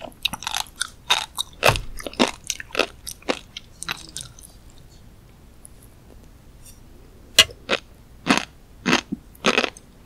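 Crunchy food crackles and pops in a mouth up close.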